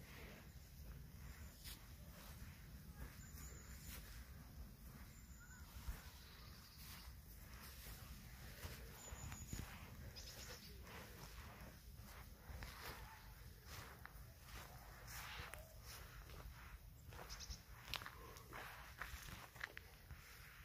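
Footsteps swish through wet grass and then crunch on a path.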